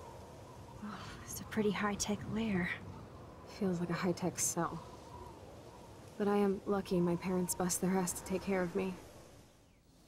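A young woman speaks calmly and wryly, close by.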